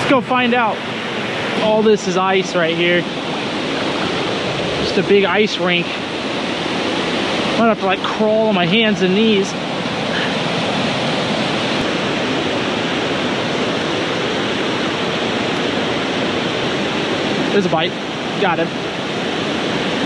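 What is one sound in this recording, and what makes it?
A stream rushes steadily over rocks nearby.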